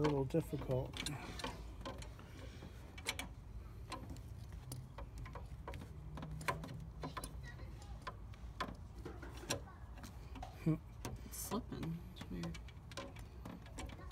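Metal tools click and clink against an engine.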